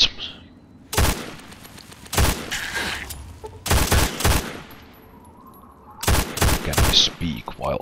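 A pistol fires several loud, sharp shots.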